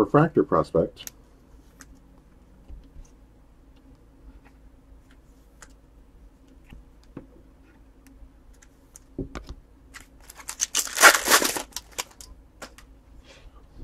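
A plastic wrapper crinkles and rustles close by as it is handled.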